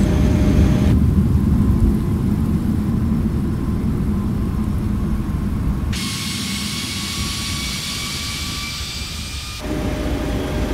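Twin-engine turbofan airliner engines drone in flight.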